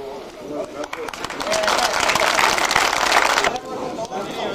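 A crowd applauds loudly outdoors.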